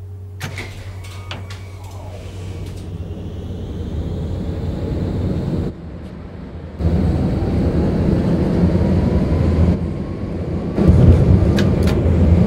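An electric tram motor whines, rising in pitch as it speeds up.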